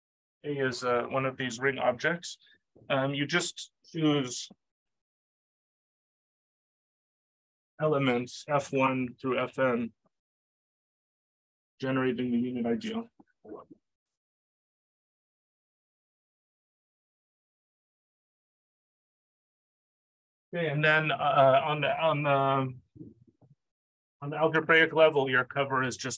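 A middle-aged man speaks calmly in pauses through a microphone.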